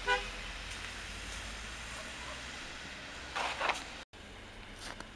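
A car drives past on a snowy road.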